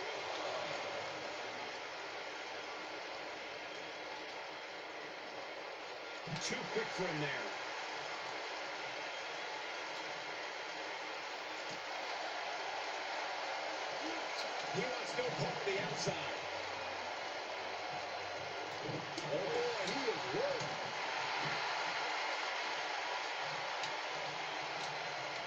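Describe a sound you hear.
A crowd roars steadily through a television speaker.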